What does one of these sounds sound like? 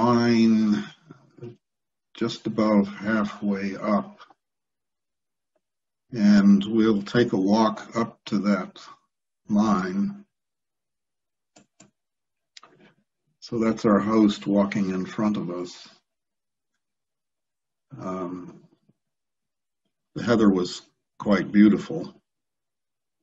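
An elderly man talks calmly through an online call, in short phrases with pauses.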